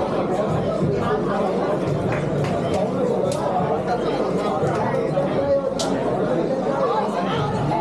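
A crowd chatters and cheers in an echoing hall.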